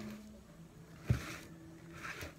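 A plastic plant pot knocks as it is set down on a hard table.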